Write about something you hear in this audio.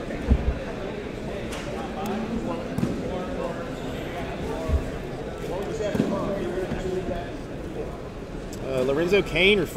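Foil card packs crinkle and tear as hands open them.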